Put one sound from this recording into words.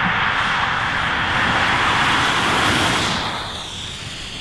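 A car rushes past close by.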